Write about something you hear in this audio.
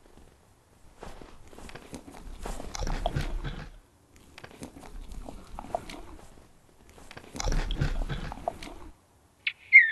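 A moose chews and munches on food.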